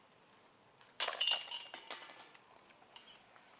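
Metal chains rattle and clink as a flying disc hits a basket.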